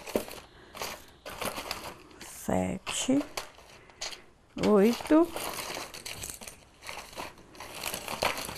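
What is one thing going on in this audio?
Paper and cardboard boxes rustle and clatter as hands sort through them.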